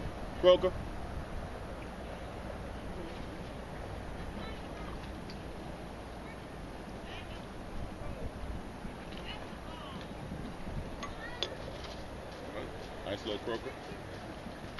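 A man speaks briefly nearby.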